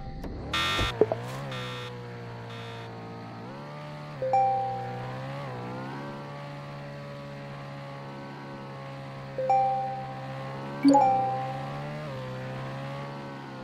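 A car engine hums and revs up through the gears.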